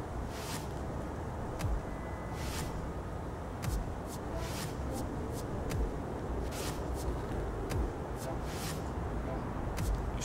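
Paper pages rustle as they turn.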